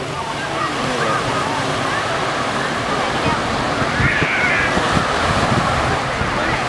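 Small waves lap and splash steadily on a beach, outdoors.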